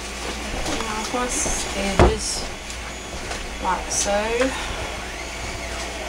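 A plastic hair dryer knocks as it is picked up and set down.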